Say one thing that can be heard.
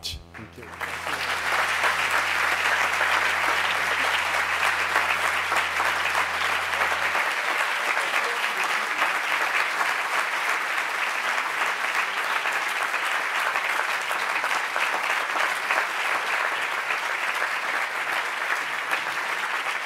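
A large audience applauds loudly in a big hall.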